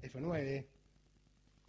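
A man says a few words close to a microphone.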